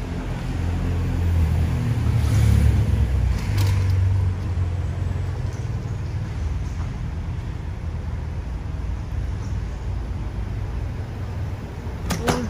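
Traffic hums steadily in the street.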